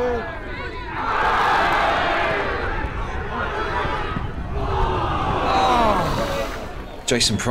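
A crowd cheers and roars outdoors.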